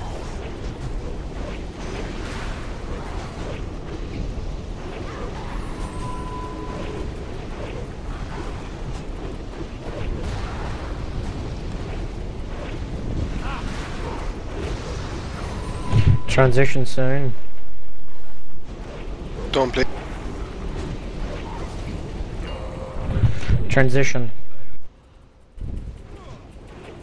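Magic spells crackle and fiery blasts boom in a battle.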